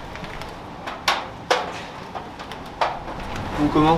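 A metal cart rattles as it is carried.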